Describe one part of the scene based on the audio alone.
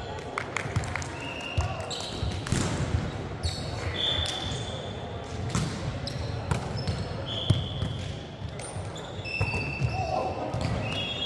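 A volleyball is hit with sharp slaps in a large echoing hall.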